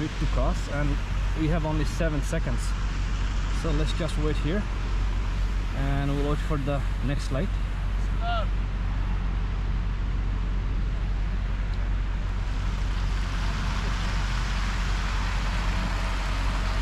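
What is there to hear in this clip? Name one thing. Car tyres hiss through wet slush on a city street.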